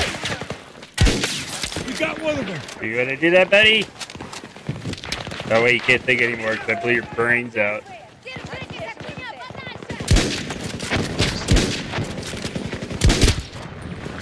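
A sniper rifle fires sharp, loud shots.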